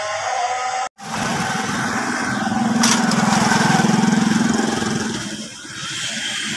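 A motorcycle engine hums as it rides past on a street.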